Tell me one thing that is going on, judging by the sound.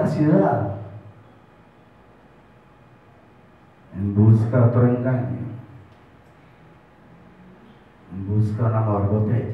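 A man sings short phrases into a microphone, heard through a loudspeaker.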